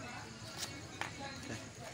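A small pouch thumps onto a hard floor.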